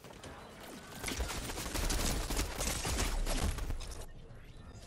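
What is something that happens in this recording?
Rapid gunshots crack loudly, in bursts.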